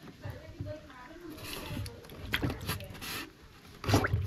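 Water splashes and sloshes as hands move through it.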